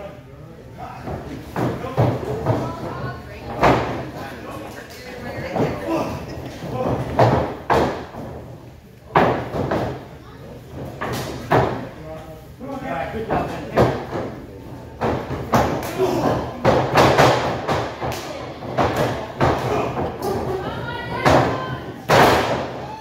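Bodies slam onto a wrestling ring's canvas with loud thuds.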